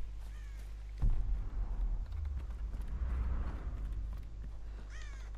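Footsteps thud on wooden stairs and boards.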